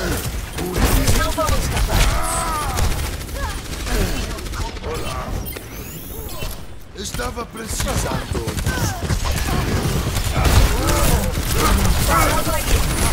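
Gunshots and energy blasts crackle in quick bursts.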